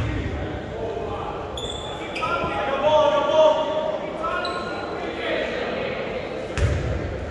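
Spectators murmur and call out in a large echoing gym.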